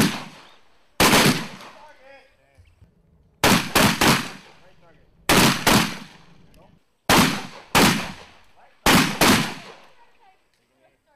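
Rifle shots ring out loudly in bursts outdoors, each echoing away.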